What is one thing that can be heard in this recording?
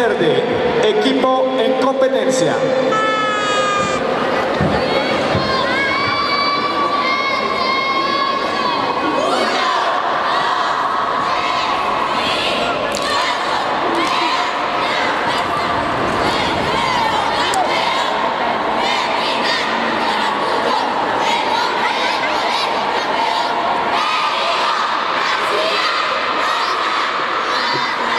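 Upbeat music plays loudly over loudspeakers in a large echoing hall.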